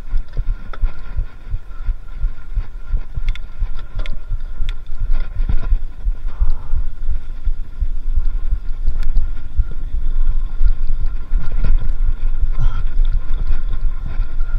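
Bicycle tyres rumble and crunch over a bumpy dirt track.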